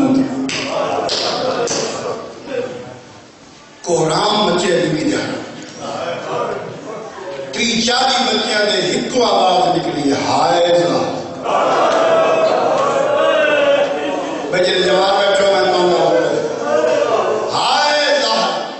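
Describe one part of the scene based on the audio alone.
A man recites passionately into a microphone, heard through loudspeakers.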